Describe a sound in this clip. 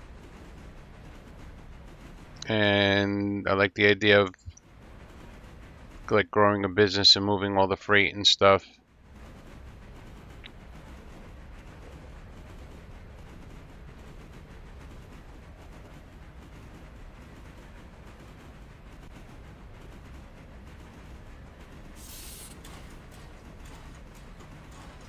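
A steam locomotive chugs along the rails.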